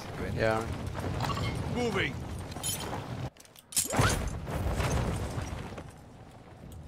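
Wind rushes loudly past a gliding parachute.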